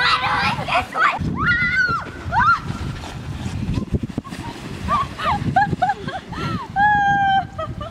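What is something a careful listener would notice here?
A sled scrapes and slides over snow.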